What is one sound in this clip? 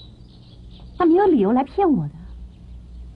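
A young woman speaks tensely close by.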